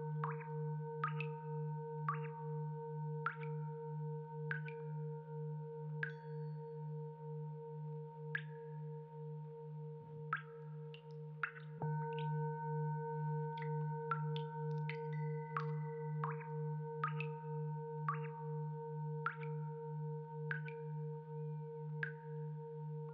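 Metal is struck again and again, each strike ringing briefly.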